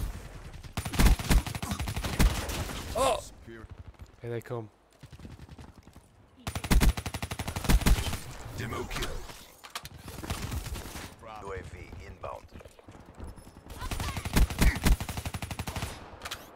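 Automatic gunfire rattles in short, loud bursts.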